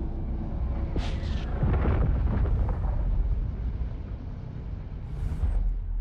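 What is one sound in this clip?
A spaceship's engines rumble low and steadily.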